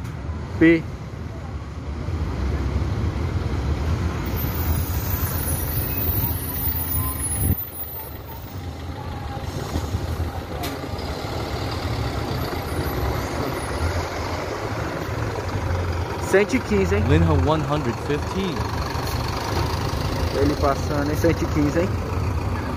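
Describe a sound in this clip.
A bus engine rumbles steadily close by.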